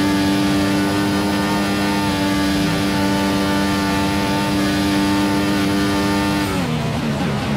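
A racing car engine screams at a steady high pitch.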